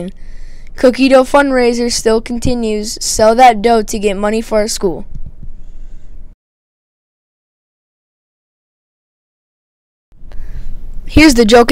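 A boy speaks with animation into a close microphone.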